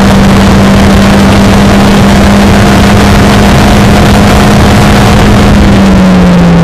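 A Formula Renault single-seater race car's engine screams at high speed.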